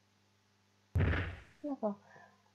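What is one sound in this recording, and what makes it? A loud crash booms.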